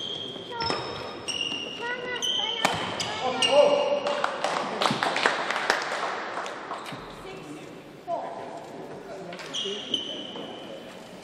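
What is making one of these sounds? Shoes squeak on a court floor.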